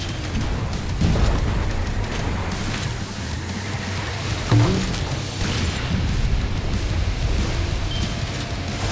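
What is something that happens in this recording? A boat's motor hums steadily.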